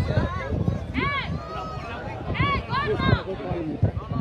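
Men in a crowd whoop and shout excitedly.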